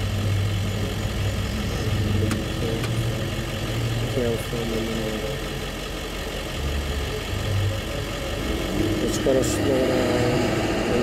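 A car engine idles nearby with a low rumble.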